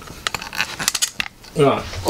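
A tripod knocks and rattles as it is handled.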